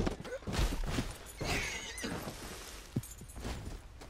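A horse's hooves thud on rocky ground.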